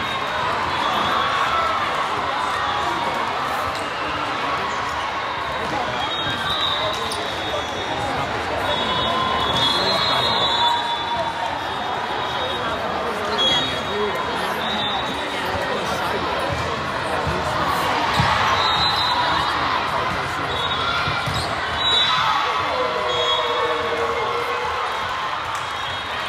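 Young women shout and call out in a large echoing hall.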